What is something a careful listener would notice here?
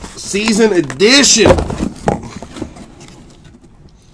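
Paper rustles as an envelope is handled close by.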